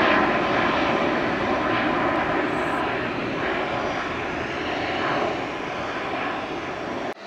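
A jet airliner roars loudly overhead as it climbs away, slowly fading.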